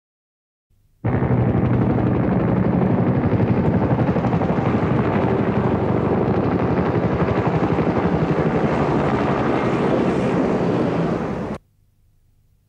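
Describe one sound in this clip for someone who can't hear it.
Helicopter rotors thud loudly overhead.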